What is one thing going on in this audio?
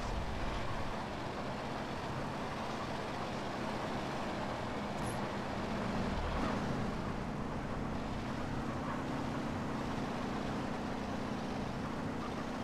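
A heavy truck engine rumbles steadily as it drives along a road.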